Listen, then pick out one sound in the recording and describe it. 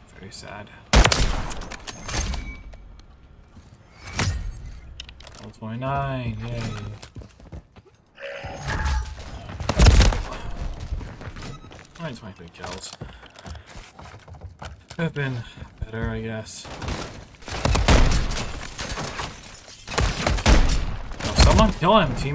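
Sniper rifle shots boom loudly with a sharp crack.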